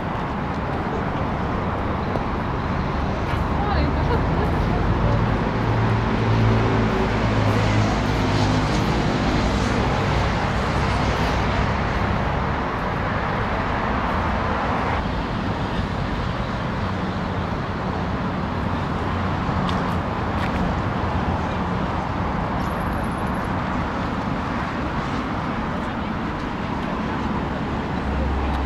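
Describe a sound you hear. Traffic hums steadily on a nearby road.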